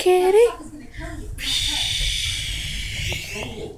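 A television plays nearby.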